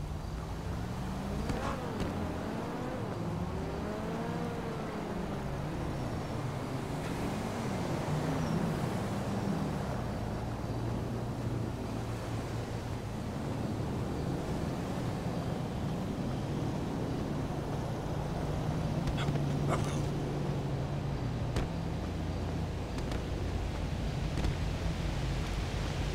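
Footsteps tap steadily on a hard ledge.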